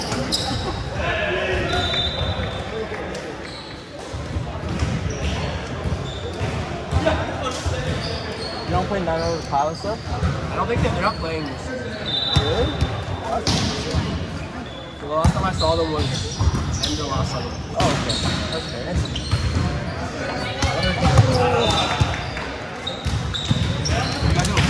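Young men talk and call out nearby, echoing in a large hall.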